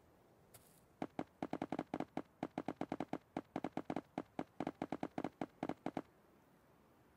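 Blocks are placed in quick succession with short, hollow thuds.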